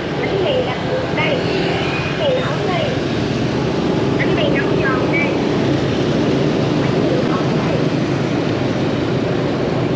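Motor scooters ride past in city traffic.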